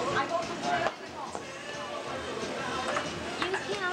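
A ping-pong ball clicks on a paddle and table.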